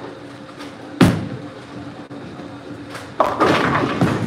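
A bowling ball thuds onto a wooden lane and rolls away.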